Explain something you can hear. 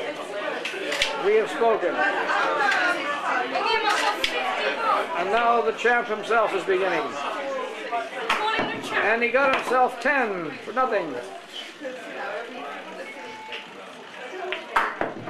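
Billiard balls click together as they are struck with a cue.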